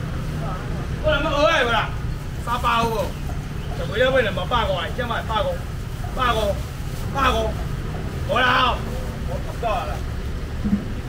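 A young man talks loudly nearby.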